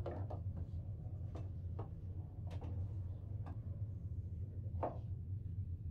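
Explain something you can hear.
A billiard ball rolls softly across a table.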